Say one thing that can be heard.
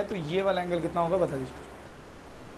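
A young man speaks calmly and clearly into a close microphone.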